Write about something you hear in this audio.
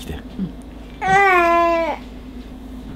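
A baby cries out loudly for a moment.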